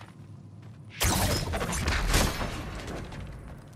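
A heavy metal gate grinds and clanks open.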